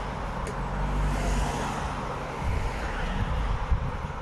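A car passes on a road.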